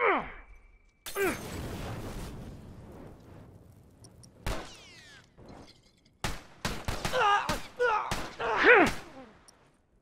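Gunshots crack and echo in bursts.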